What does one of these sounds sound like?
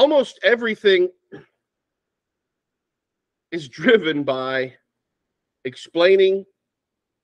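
A middle-aged man speaks calmly through an online call, in short bursts with pauses.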